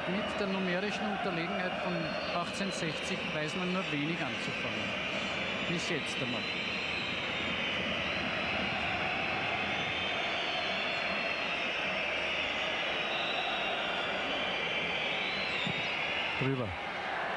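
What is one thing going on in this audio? A large stadium crowd roars and chants steadily outdoors.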